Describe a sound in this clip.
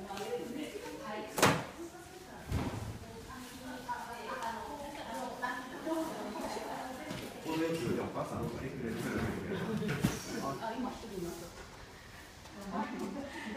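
Elderly women talk to each other nearby.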